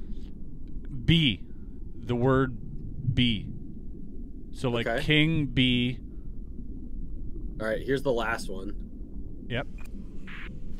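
A man talks into a close microphone with animation.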